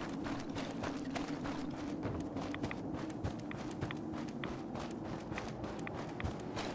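Footsteps crunch over dry ground at a steady walking pace.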